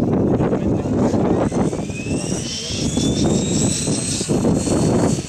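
A model helicopter's engine whines and rises in pitch as it spools up.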